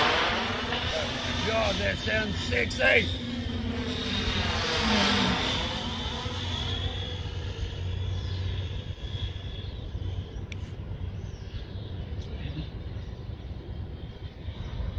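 Drone propellers whir with a buzzing whine that rises and falls in pitch.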